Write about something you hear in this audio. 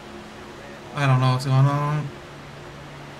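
A young man speaks briefly and loudly into a microphone.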